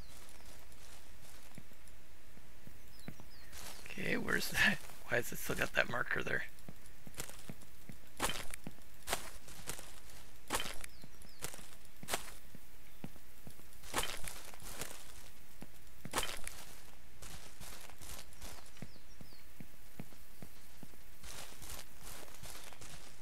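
Footsteps thud over grass and dirt.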